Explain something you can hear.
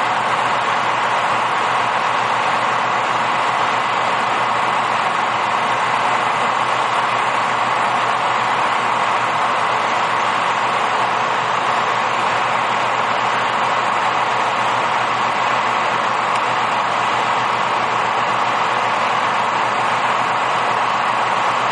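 A rail grinding machine roars and grinds loudly along the track.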